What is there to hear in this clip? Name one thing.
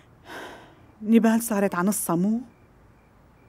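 A middle-aged woman speaks quietly nearby.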